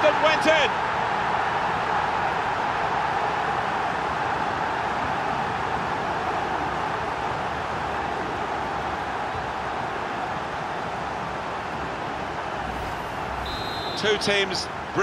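A large crowd cheers and roars loudly, slowly fading.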